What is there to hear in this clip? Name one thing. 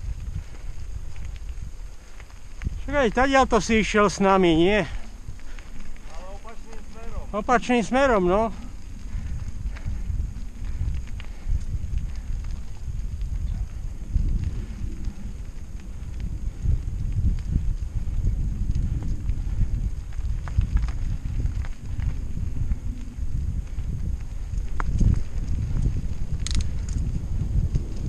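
Bicycle tyres crunch and rattle over a rough gravel track.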